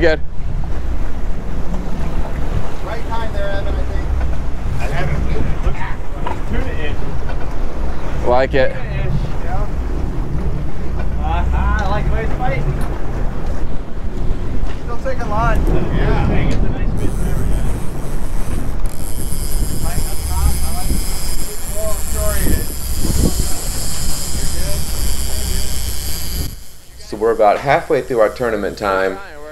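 Waves splash against the hull of a moving boat.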